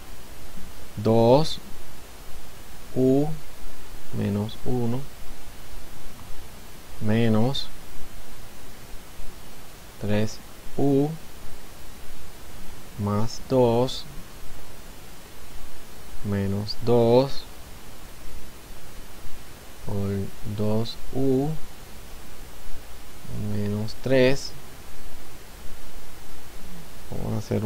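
A man speaks calmly and slowly into a close microphone, in short phrases with pauses.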